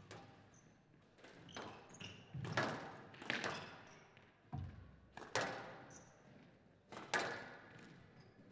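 A squash ball smacks sharply against walls and rackets in an echoing court.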